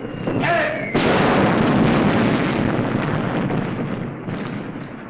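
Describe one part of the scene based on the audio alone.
An explosion roars loudly.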